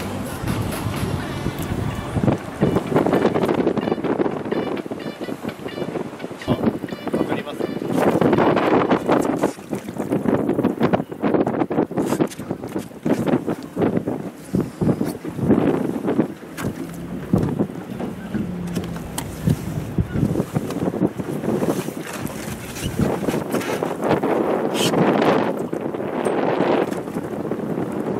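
Wind blows steadily outdoors on open water.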